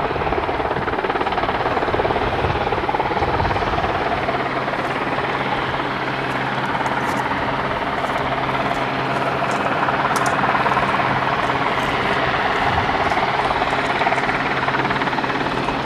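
A helicopter's rotor thuds and its engine roars nearby.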